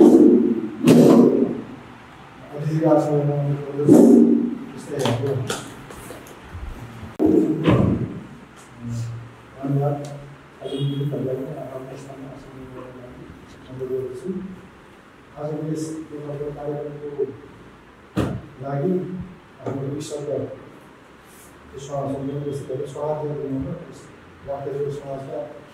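A man speaks steadily and clearly nearby.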